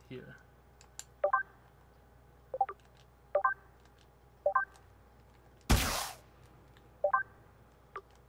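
Short electronic menu blips sound as game options are selected.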